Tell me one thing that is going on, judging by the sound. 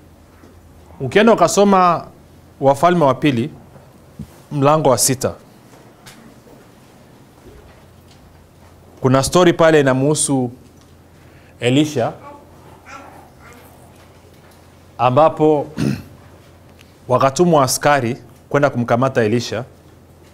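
A middle-aged man speaks calmly into a microphone, in short bursts with pauses.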